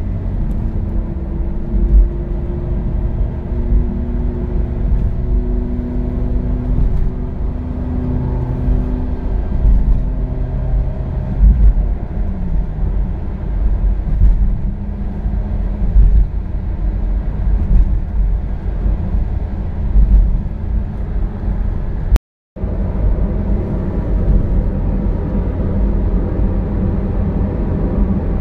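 Tyres rumble and roar on a smooth road.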